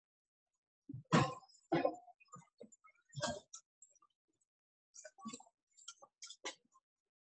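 Dishes clink as they are set down.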